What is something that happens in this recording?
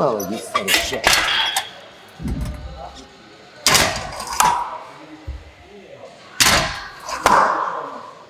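Weight plates clank on a metal machine.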